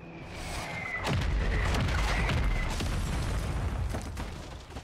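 An explosion booms with a loud roar.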